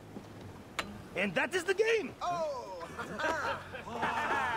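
A man speaks with excitement close by.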